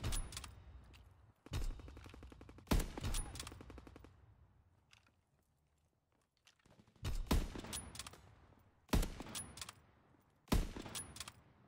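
A sniper rifle fires sharp, loud shots that echo away.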